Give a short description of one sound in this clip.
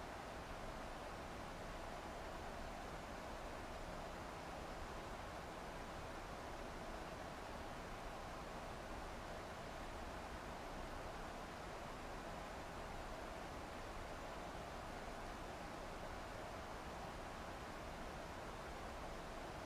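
Jet engines drone steadily.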